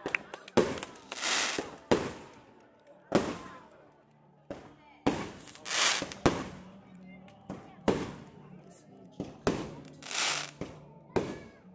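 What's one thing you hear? Fireworks hiss and fizz as they shoot upward.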